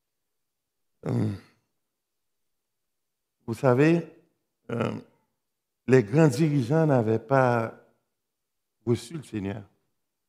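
A man speaks slowly and calmly into a microphone, with pauses between phrases.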